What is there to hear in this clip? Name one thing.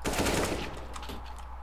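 Gunfire bursts loudly.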